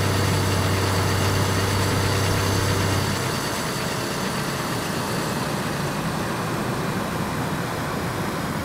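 Tyres roll on a paved road.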